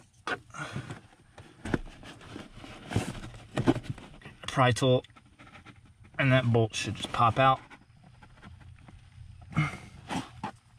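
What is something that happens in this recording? A plastic pry tool scrapes and clicks against car trim clips.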